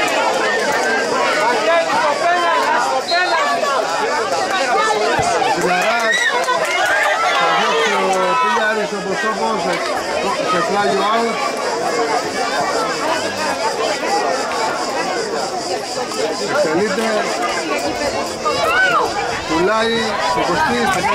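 Men shout and call out to each other across an open pitch.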